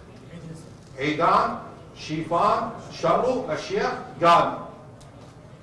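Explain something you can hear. A man speaks clearly into a microphone, announcing.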